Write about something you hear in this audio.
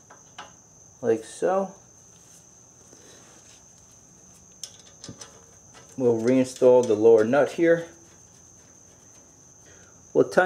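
Metal parts clink faintly as hands handle a brake caliper.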